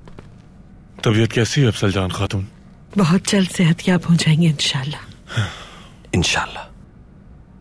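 A woman speaks softly and warmly nearby.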